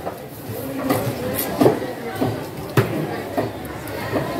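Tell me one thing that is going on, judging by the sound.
Knocks sound as a knife taps against a wooden board.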